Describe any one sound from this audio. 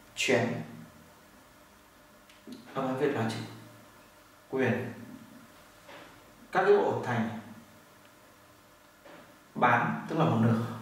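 A man speaks calmly and clearly in short phrases, close by.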